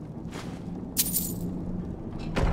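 Coins clink as they are picked up.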